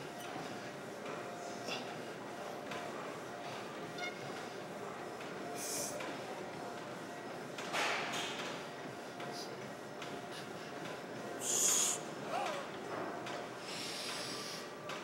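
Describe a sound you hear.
A man breathes out hard with effort.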